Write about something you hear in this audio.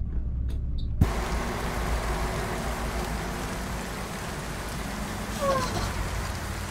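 Rain hisses steadily on the road.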